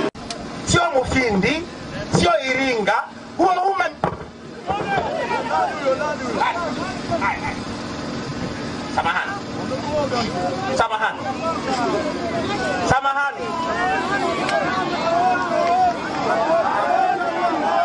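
A man speaks forcefully through a microphone and loudspeakers outdoors.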